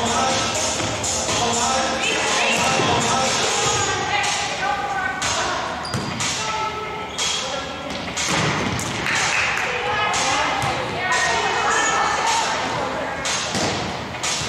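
A volleyball thuds as players hit it in a large echoing gym.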